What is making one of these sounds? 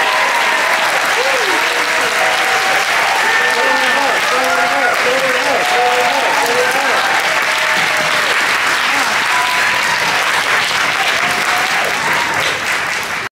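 A woman sings loudly through a microphone in a large hall.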